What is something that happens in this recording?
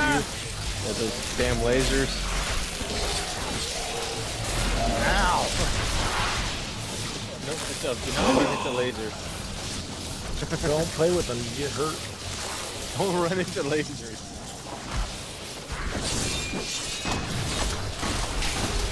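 Magic spells crackle and whoosh in quick bursts.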